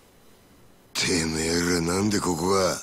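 A middle-aged man asks a question in a low, gruff voice.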